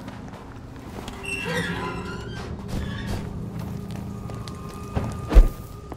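A fire crackles close by.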